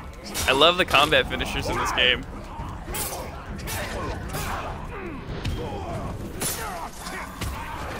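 Swords clash and slash repeatedly in a fight.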